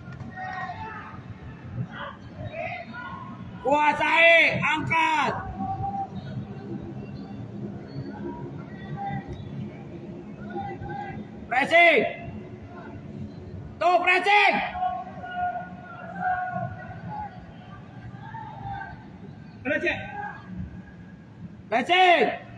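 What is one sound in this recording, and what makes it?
Young men shout to each other from a distance, echoing around a large empty stadium.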